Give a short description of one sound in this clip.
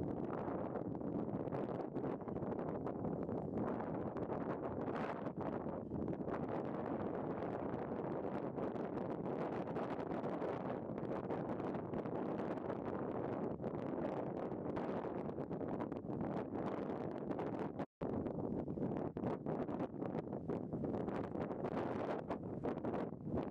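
Wind blows hard and rumbles against the microphone outdoors.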